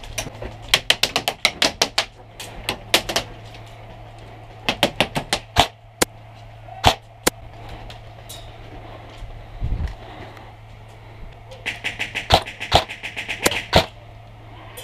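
Airsoft guns fire in rapid bursts of sharp clicks nearby.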